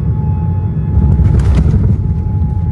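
Landing gear thumps onto a runway.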